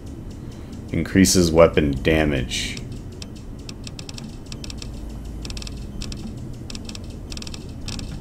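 Soft interface clicks tick as menu items are selected.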